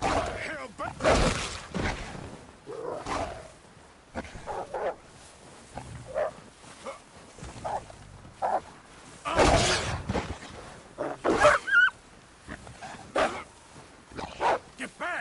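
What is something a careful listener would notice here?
Footsteps crunch through deep snow.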